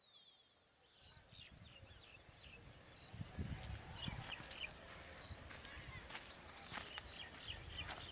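Footsteps crunch through dry grass close by.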